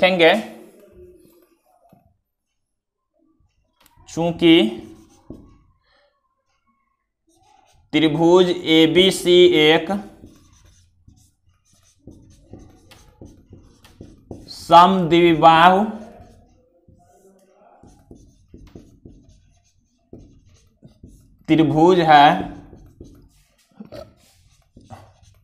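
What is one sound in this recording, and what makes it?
A marker scratches on a whiteboard.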